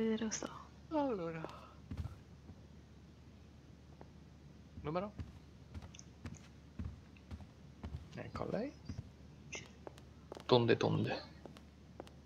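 Heels click on a hard floor at a steady walking pace.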